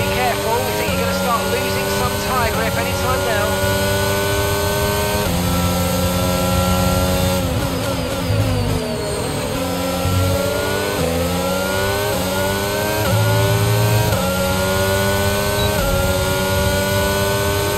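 A racing car engine screams at high revs, shifting up through the gears and dropping down while braking for a corner.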